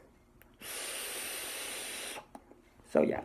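A vape device hisses steadily as a young man draws on it.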